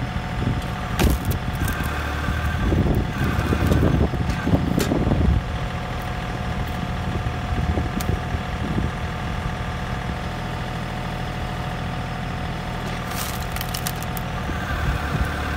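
Wood cracks and splits apart.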